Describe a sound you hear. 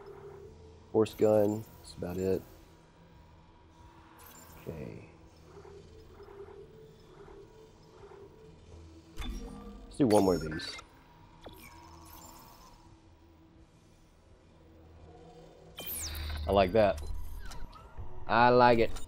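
Electronic menu tones chirp and beep in short bursts.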